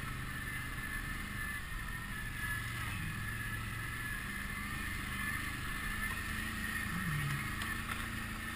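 Dry leaves and twigs crunch under tyres.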